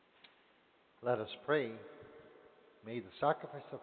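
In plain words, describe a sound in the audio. An elderly man speaks slowly and solemnly through a microphone in a large echoing hall.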